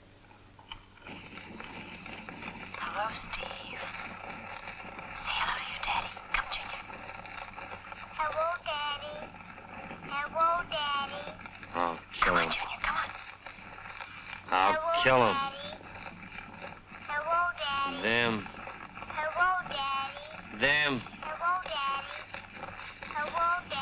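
A gramophone plays an old record of music.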